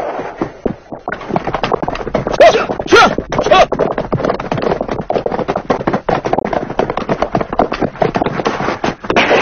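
Horses gallop with rapid, heavy hoof beats.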